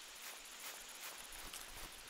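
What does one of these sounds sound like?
Leaves of ferns rustle against the body.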